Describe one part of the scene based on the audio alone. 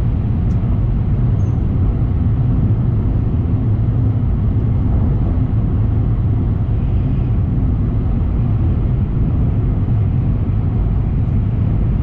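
A train rumbles steadily at speed, heard from inside a carriage.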